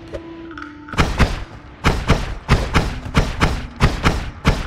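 A game character's mining tool thuds rapidly against rock.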